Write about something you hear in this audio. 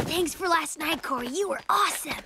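A young boy talks with animation.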